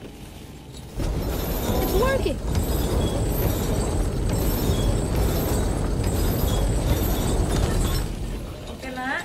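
A heavy wooden lift rumbles and creaks as a chain turns.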